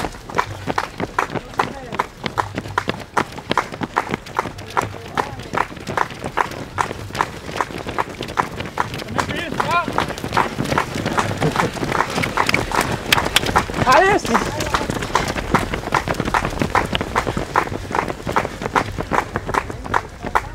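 Many running feet patter steadily on a paved path.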